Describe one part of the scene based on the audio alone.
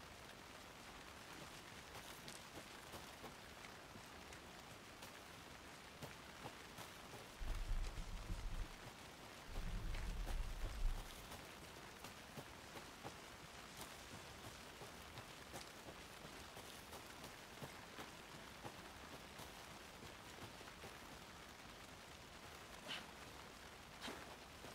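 Footsteps crunch steadily on a forest path.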